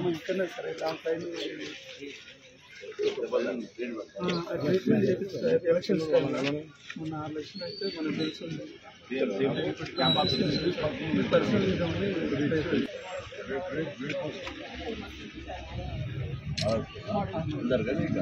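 Several people talk at once outdoors in the background.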